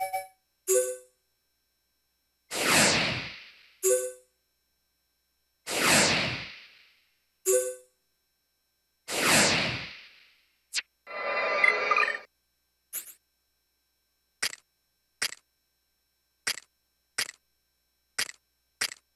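Short electronic menu blips sound in quick succession.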